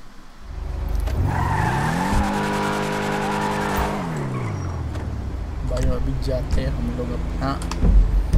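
A car engine revs up loudly, holds high, then drops back to idle.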